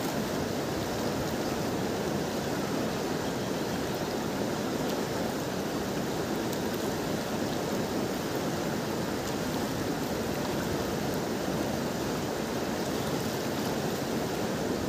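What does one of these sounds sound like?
A wide river rushes steadily over stones nearby.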